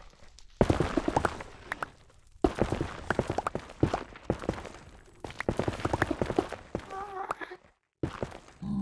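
A pickaxe digs through stone blocks with rapid crunching taps.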